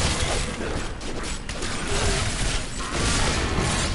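Creatures screech and groan as they are struck down.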